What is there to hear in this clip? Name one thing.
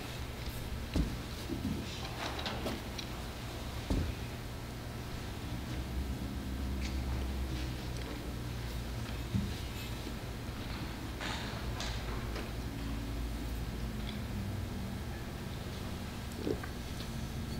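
Metal vessels clink softly against a table.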